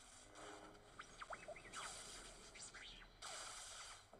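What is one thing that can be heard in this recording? A small robot beeps and whistles in quick rising and falling tones.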